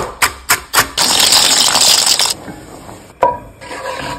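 A wooden spoon scrapes against a metal pan.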